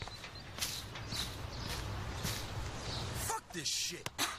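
Footsteps walk at a steady pace on a hard path.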